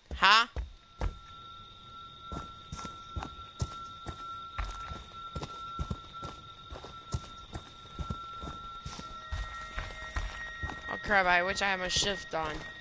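Heavy footsteps thud on the ground at a steady walk.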